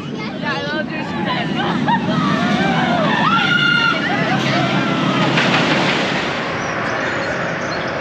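A roller coaster roars and rattles along its track overhead.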